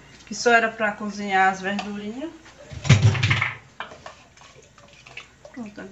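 A metal ladle scrapes and stirs inside a metal pot.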